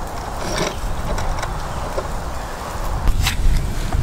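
A metal clamp squeaks as it is screwed tight.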